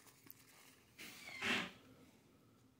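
A cardboard case slides and scrapes in hands.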